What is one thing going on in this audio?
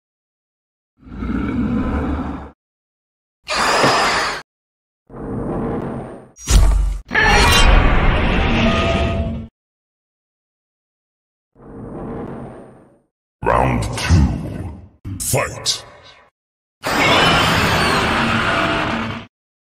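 A giant monster roars loudly and fiercely, again and again.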